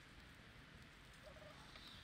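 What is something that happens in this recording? Oil pours and splashes into a pot.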